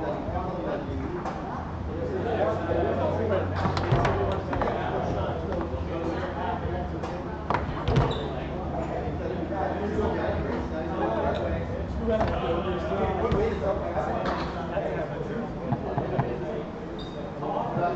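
A foosball ball cracks and knocks against the game's plastic players and walls.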